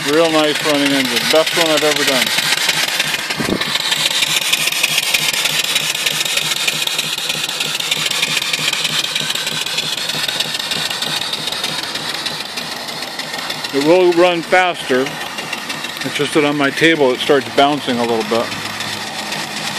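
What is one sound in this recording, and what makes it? Steam hisses loudly from a pipe.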